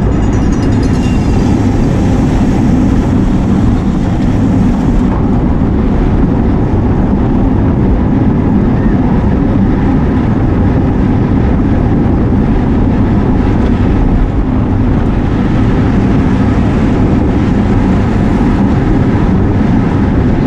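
Strong wind buffets a moving microphone throughout.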